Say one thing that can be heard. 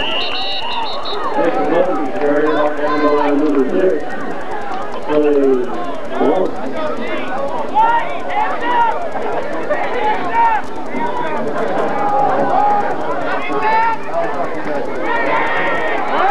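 A crowd of spectators talks and cheers nearby outdoors.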